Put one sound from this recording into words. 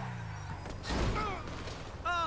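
A body thumps heavily against a vehicle.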